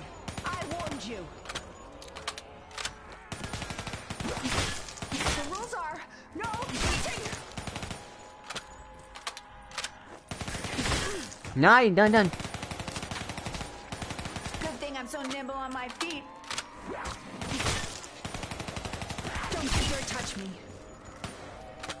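Gunfire rattles from a game.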